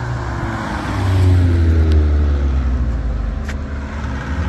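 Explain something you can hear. A car engine revs up in the distance.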